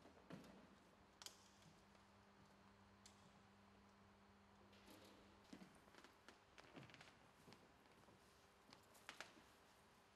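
A table tennis ball clicks against paddles and a table, echoing in a large hall.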